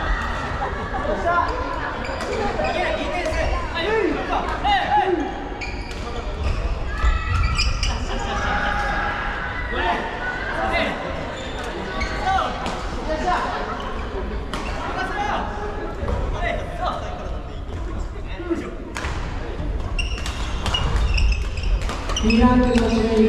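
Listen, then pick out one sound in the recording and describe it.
Shoes squeak sharply on a wooden floor in a large echoing hall.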